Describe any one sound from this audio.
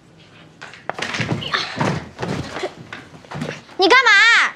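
A boy flops onto a bed.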